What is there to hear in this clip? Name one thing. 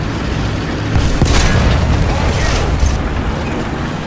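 A shell explodes against a tank.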